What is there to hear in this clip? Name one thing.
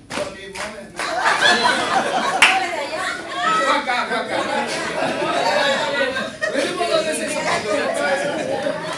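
A group of men and women talk and laugh loudly together in a room with some echo.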